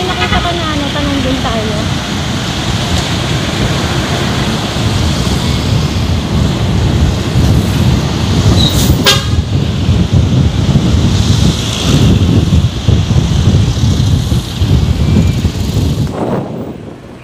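Wind rushes loudly past a motorcycle rider's microphone.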